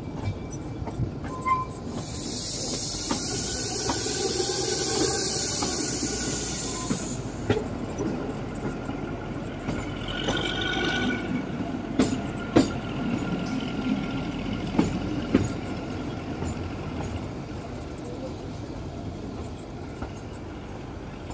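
Train wheels click and clatter over rail joints.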